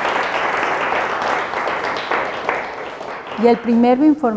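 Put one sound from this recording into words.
An audience applauds in a room, then the applause dies away.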